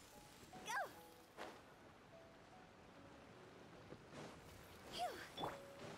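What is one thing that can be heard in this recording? A magical attack crackles and chimes.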